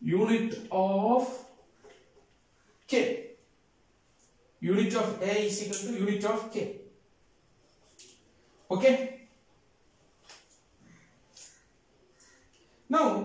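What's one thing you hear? A man speaks calmly and clearly close by, explaining in pauses.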